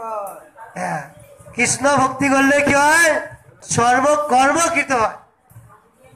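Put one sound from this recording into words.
A man sings loudly through a microphone.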